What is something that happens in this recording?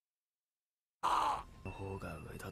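A man shouts in anguish.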